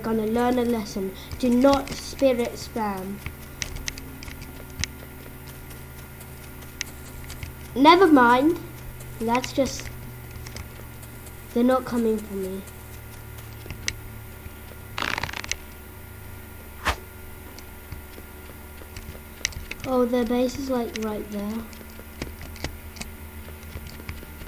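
Soft game footsteps patter steadily.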